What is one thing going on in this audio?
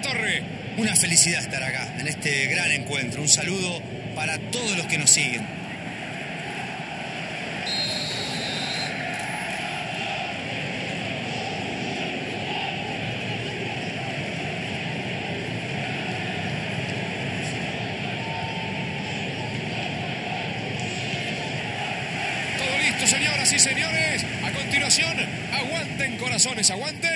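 A large stadium crowd cheers and murmurs steadily.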